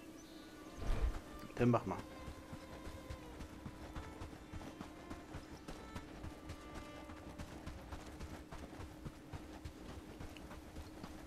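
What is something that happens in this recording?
Footsteps thud steadily on grass and dirt.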